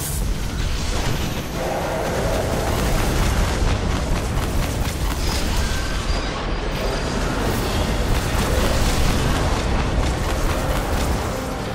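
Electric blasts crackle and hiss.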